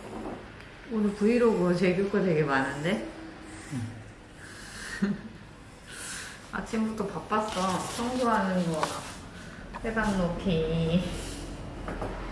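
A young woman talks softly and playfully nearby.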